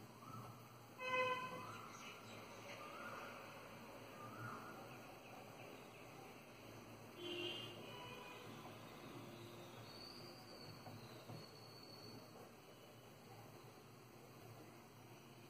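A crochet hook softly pulls yarn through loops.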